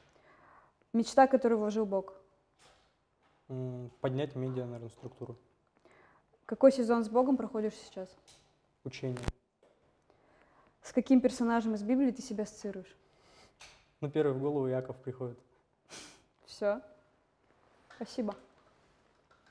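A young woman speaks calmly into a microphone nearby.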